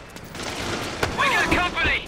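A scuffle thuds as one fighter grabs another.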